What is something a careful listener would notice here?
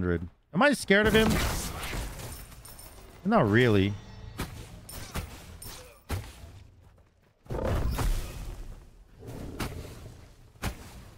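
A magical spell whooshes and crackles in a game.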